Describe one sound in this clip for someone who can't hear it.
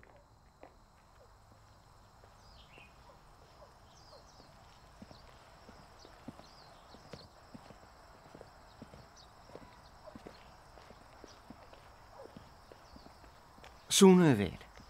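Footsteps tap softly on a paved path.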